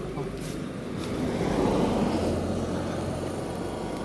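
A car drives past on the road.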